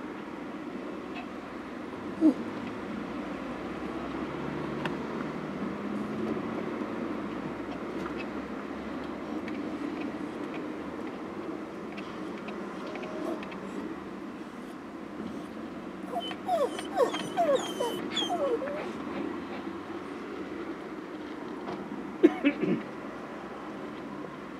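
Cars drive by on a nearby road, heard from inside a car.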